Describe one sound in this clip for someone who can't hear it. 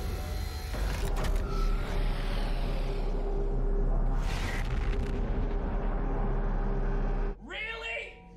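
A swirling portal hums and roars loudly.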